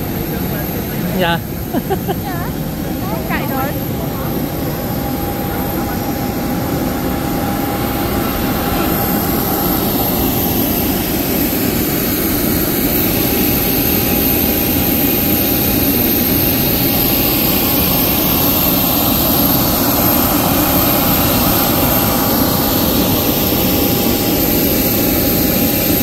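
An aircraft engine hums and whines steadily outdoors.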